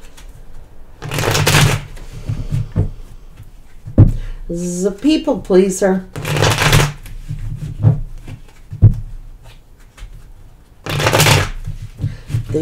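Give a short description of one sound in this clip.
Playing cards riffle and shuffle in bursts.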